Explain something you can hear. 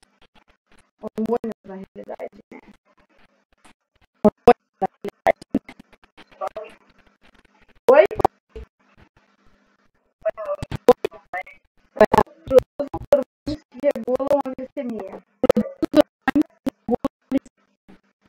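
Children talk over an online call in short, broken bursts.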